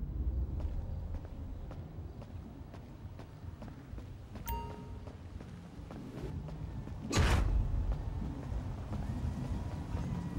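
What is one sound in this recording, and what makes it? Footsteps fall on pavement.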